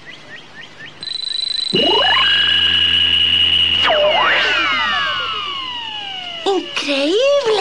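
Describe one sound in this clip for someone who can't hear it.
An electronic hum rises and whines steadily.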